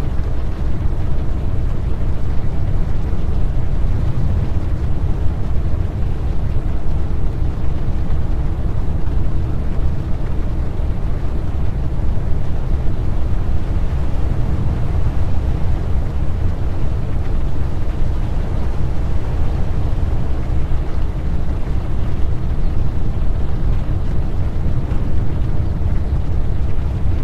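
A truck engine drones steadily as it drives.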